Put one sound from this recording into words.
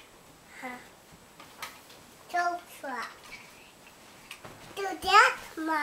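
A toddler babbles and squeals in short high bursts nearby.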